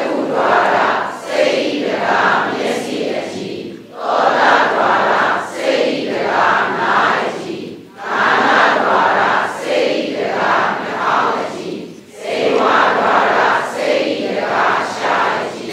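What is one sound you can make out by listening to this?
An elderly man reads aloud steadily into a close microphone.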